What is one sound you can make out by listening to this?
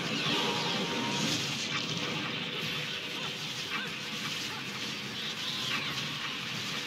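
Metal blades clash and slash in a fast fight.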